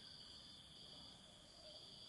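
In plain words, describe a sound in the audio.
A monkey gives a short, soft call close by.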